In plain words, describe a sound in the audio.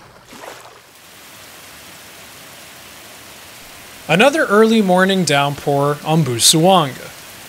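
Heavy rain pours down steadily on plants and grass.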